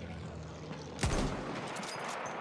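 A bolt-action rifle fires a single loud shot.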